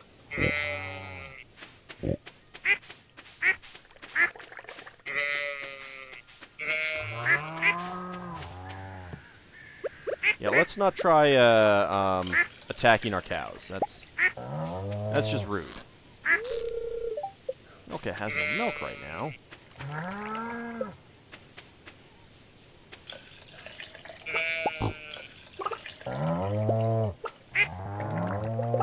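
Cows moo again and again.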